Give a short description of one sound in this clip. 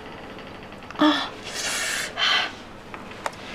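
A young woman gasps and coughs sharply.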